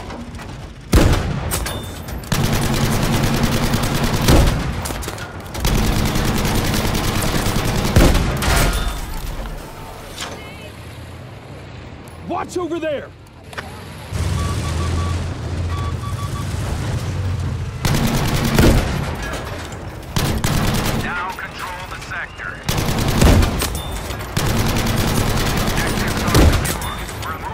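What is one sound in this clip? A tank cannon fires with heavy booming blasts.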